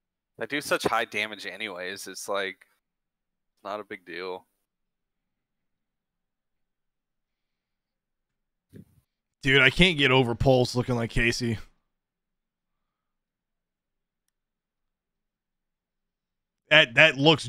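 A man talks with animation through a close microphone, in bursts with pauses.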